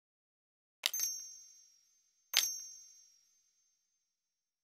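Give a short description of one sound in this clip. A bright digital chime rings out twice, each fading away slowly.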